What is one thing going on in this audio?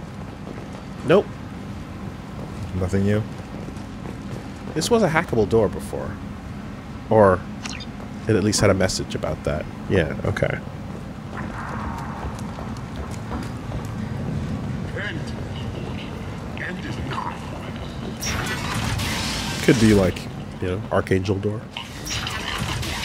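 Two young men talk and react with animation, heard close through a microphone.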